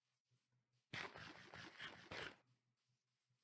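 Food is munched with quick crunchy bites.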